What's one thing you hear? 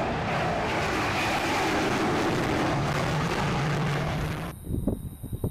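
A jet aircraft roars loudly overhead.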